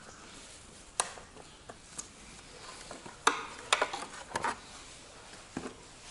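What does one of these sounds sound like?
Plastic parts click and knock sharply.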